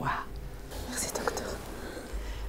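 A woman speaks softly and emotionally up close.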